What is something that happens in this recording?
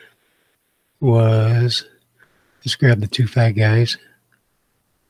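An older man speaks close to a microphone, with animation.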